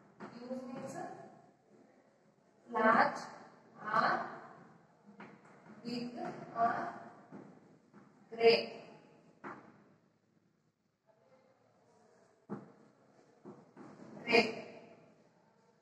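A woman speaks clearly and steadily, as if teaching.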